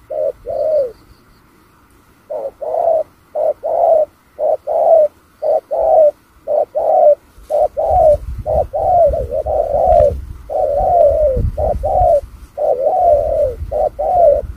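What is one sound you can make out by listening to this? A dove coos over and over, close by.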